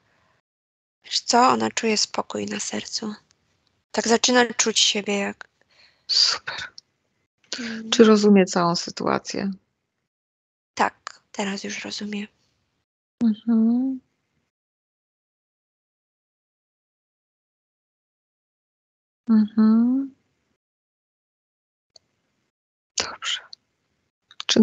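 A woman speaks calmly through a headset microphone, heard as in an online call.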